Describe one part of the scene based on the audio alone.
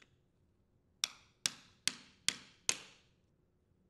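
A screwdriver clicks sharply against a plastic part.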